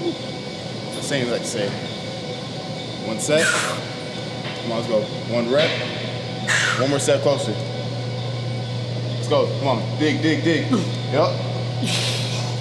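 A man shouts encouragement nearby.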